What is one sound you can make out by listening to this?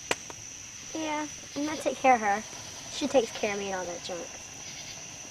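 A young girl speaks softly nearby.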